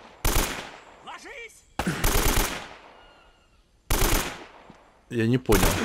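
Bursts of rifle fire crack loudly and echo.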